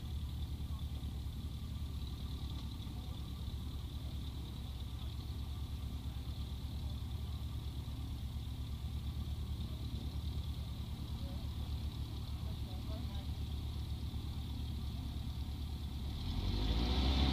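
A small aircraft engine idles close by with a steady propeller throb.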